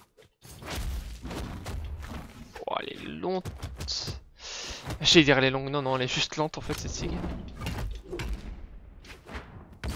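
Punches and kicks land with sharp smacks.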